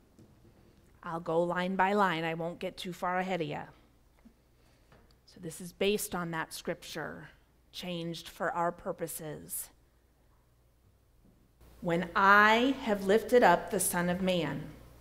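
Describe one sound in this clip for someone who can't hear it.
A woman speaks through a microphone in a large echoing room, with pauses between phrases.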